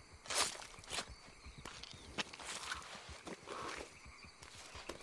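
Wet flesh squelches and tears as an animal carcass is skinned by hand.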